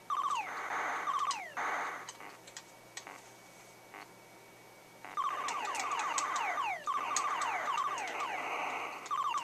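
Electronic explosions rumble in hissing bursts.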